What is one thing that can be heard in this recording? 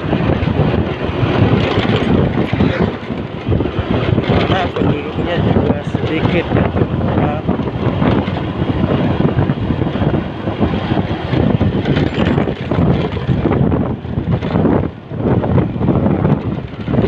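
Wind roars loudly against a moving motorcycle.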